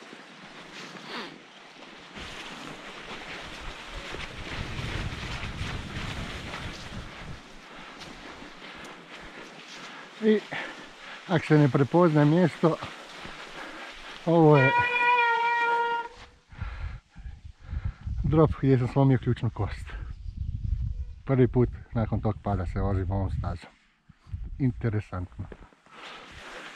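Bicycle tyres crunch over snow.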